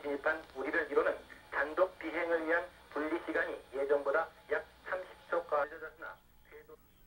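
An elderly man talks calmly up close.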